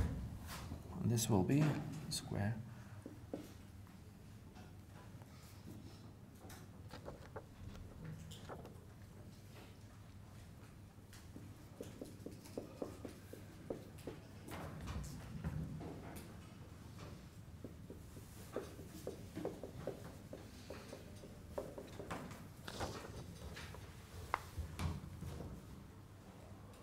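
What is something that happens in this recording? A man speaks calmly, at a distance, in an echoing room.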